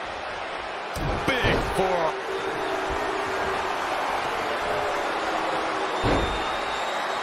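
A body slams onto a wrestling ring mat with a heavy thud.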